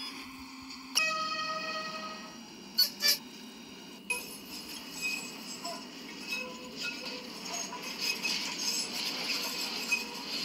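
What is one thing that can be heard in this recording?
A tram rumbles along its rails.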